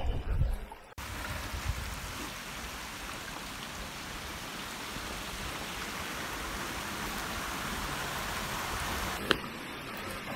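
A small stream splashes and gurgles over rocks nearby.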